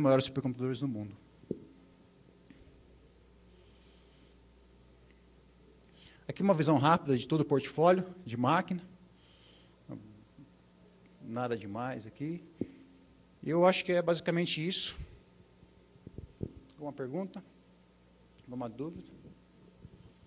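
A man speaks through a microphone in a large room, explaining in bursts with pauses.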